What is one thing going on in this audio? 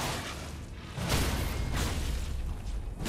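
Magic bursts crackle and shimmer.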